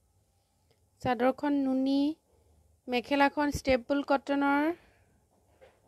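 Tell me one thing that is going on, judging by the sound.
A young woman speaks up close in a drawn-out, sing-song voice.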